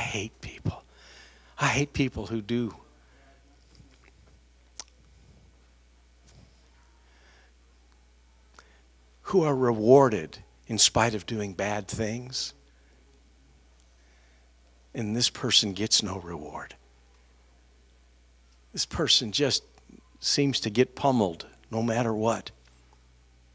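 A middle-aged man speaks with animation into a microphone, in bursts with long pauses.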